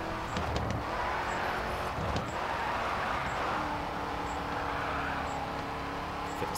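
Tyres screech while a car drifts.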